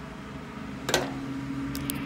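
A knife clacks down onto a metal plate.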